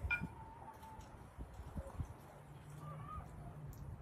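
Liquid pours from a bottle into a glass.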